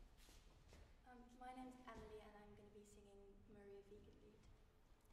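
A piano plays a short phrase of notes in an echoing hall.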